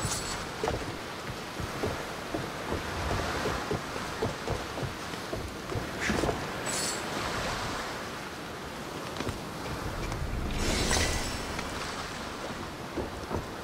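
Waves wash against a shore.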